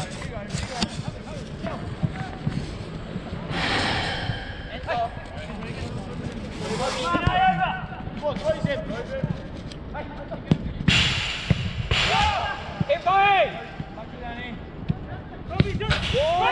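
Men shout and call out to each other across an open outdoor pitch.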